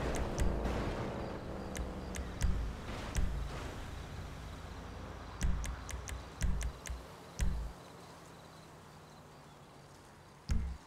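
Short menu clicks tick in quick succession.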